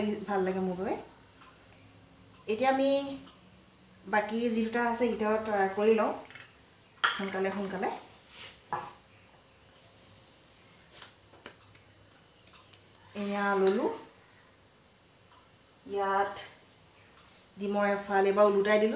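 A woman speaks calmly close by, in short phrases.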